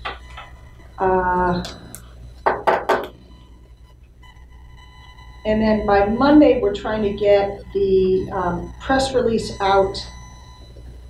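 A woman speaks calmly in a quiet room, heard from across the room.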